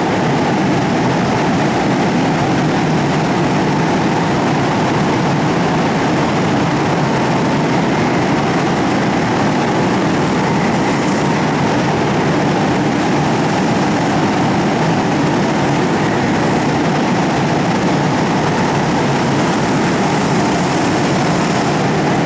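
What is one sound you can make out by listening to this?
Go-kart engines buzz and whine loudly in a large echoing hall.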